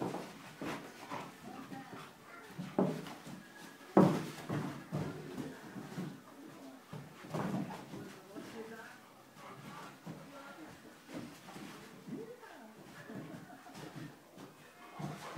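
Dog paws scrabble and thump on a carpeted floor.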